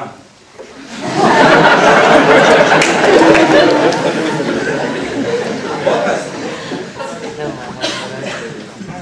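An audience bursts into loud laughter.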